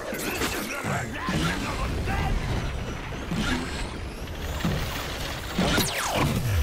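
A heavy ball rolls with a low rumble.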